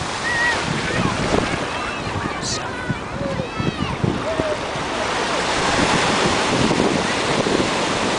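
Waves wash gently onto a beach outdoors.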